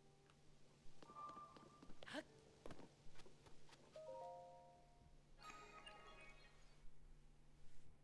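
A magical gate hums and chimes with bright ringing tones.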